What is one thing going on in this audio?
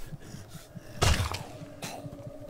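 A spiked bat thuds against a body.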